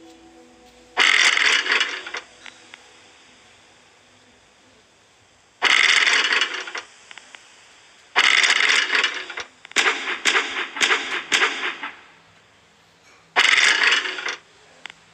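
Heavy stones rumble and clatter as they roll away.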